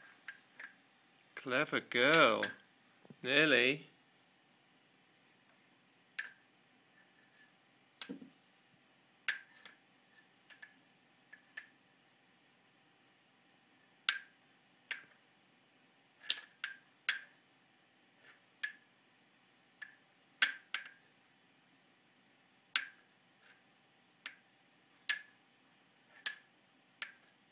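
Wooden rings clack together as they are stacked on a peg.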